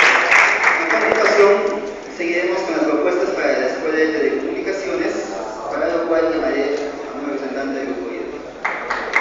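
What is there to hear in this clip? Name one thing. Several people talk among themselves nearby.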